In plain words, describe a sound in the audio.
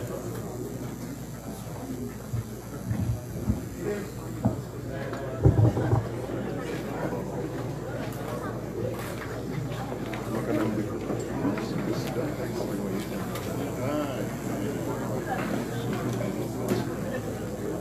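A crowd of people chatters loudly in a large echoing hall.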